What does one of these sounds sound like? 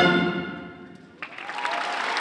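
An orchestra plays a held chord that rings out and fades in a large hall.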